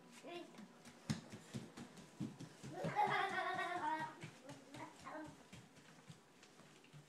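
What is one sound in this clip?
Small bare feet patter quickly on a wooden floor.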